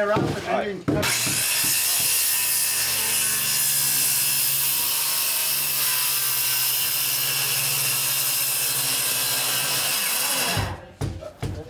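A circular saw whines loudly as it cuts through wood.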